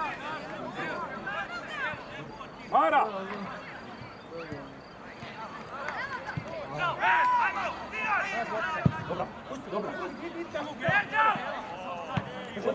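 A crowd of spectators shouts and cheers outdoors at a distance.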